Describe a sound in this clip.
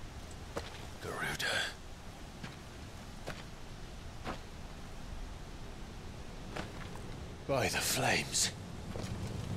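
A young man speaks tensely, close by.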